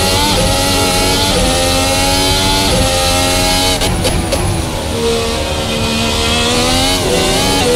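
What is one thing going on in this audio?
A racing car engine screams at high revs, its pitch dropping with each gear change.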